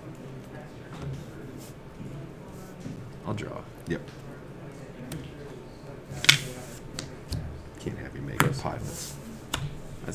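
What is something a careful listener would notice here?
Playing cards tap softly onto a cloth mat.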